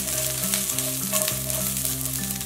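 Pieces of vegetable tumble into a frying pan.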